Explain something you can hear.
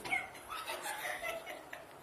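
A young man laughs nearby.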